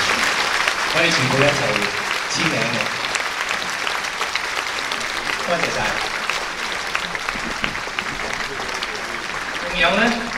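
An older man speaks into a microphone over loudspeakers.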